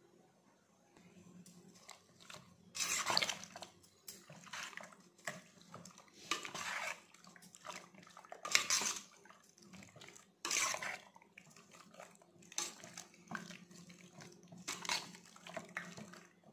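A spoon scrapes and squelches through pieces of chicken in a metal bowl.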